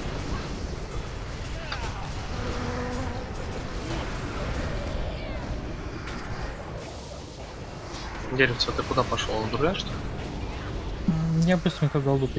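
Game combat sounds of spells and weapons crackle and clash.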